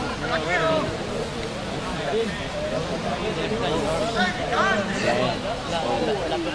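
Several men shout and call out to each other outdoors.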